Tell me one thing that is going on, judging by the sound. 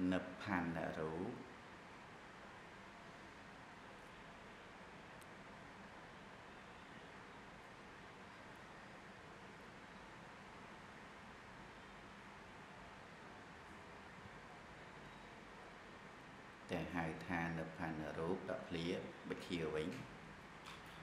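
A man speaks calmly into a microphone, close by.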